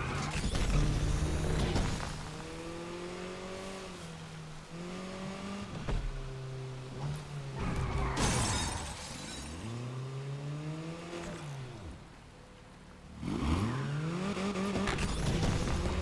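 A car engine revs up and down as gears shift.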